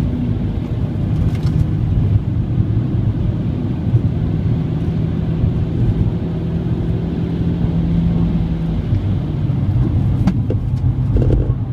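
A car's engine drones, heard from inside.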